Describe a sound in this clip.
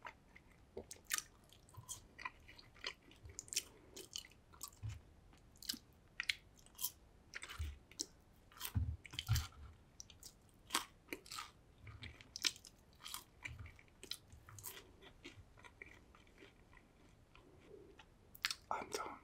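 A man chews crunchy chips close to a microphone.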